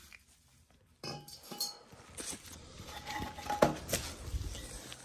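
Metal parts clink and clatter against a hard floor.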